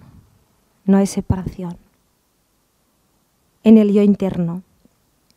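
A woman speaks in short phrases with pauses.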